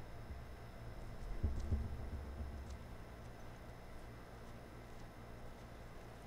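Soft footsteps shuffle slowly across a hard floor.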